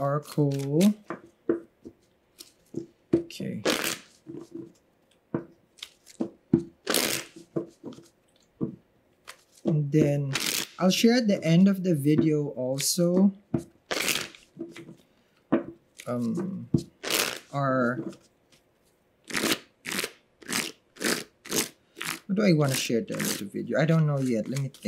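Playing cards shuffle and flick softly.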